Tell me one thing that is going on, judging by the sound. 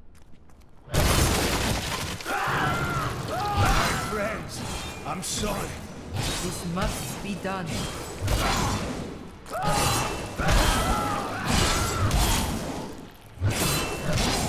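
Blades slash and clash in a hectic fight with heavy thuds.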